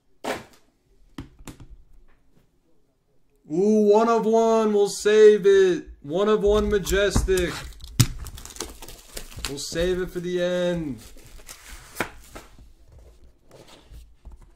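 A plastic card case clicks and taps as hands handle it.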